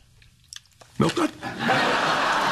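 A man speaks with surprise, close by.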